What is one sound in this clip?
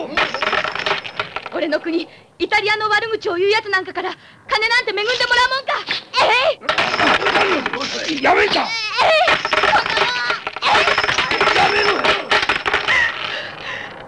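Several men laugh loudly and boisterously close by.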